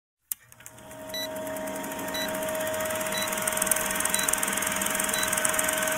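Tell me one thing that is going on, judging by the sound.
A film projector whirs and clatters steadily.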